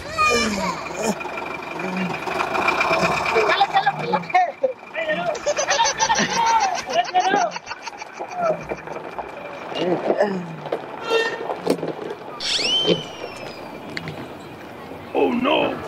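A young man laughs loudly nearby.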